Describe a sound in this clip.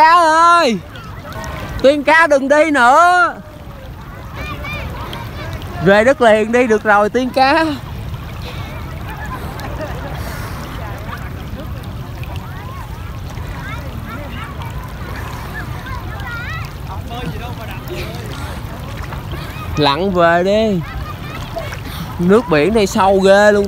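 Small waves lap gently nearby.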